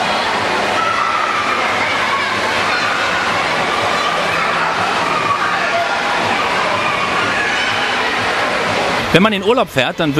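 A crowd of swimmers chatters and splashes in a large echoing hall.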